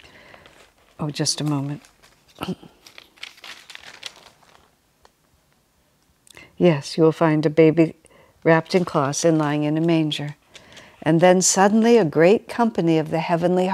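An elderly woman speaks calmly and close to a microphone, with pauses.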